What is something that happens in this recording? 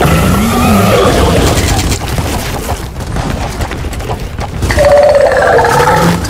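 Gunfire bursts rapidly from a rifle.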